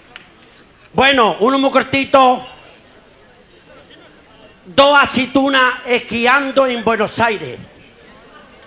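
A middle-aged man sings loudly into a microphone.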